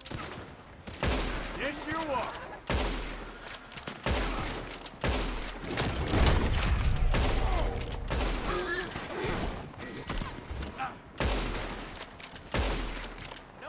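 A rifle fires loud shots, one after another.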